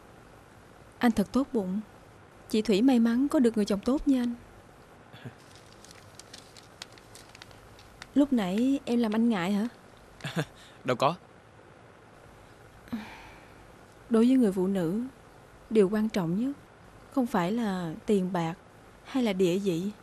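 A young woman speaks in a troubled, earnest voice close by.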